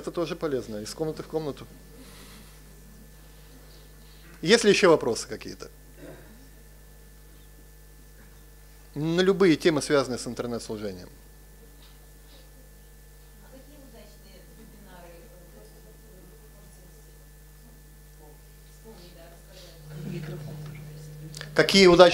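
A middle-aged man speaks calmly into a microphone in a large room, pausing between phrases.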